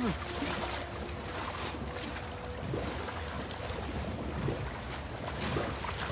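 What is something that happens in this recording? A man swims, splashing through water.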